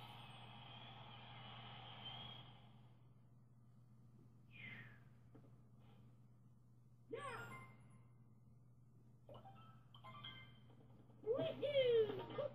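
Video game music and sound effects chime and jingle from a television's speakers.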